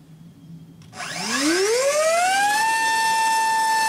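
An electric motor whirs up quickly to a high, steady whine.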